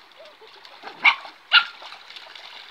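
A dog barks twice.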